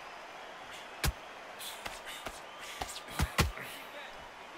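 Boxing gloves land punches with sharp thuds.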